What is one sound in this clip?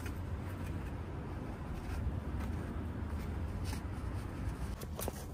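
Paper rustles and scrapes as a hand wipes a greasy surface.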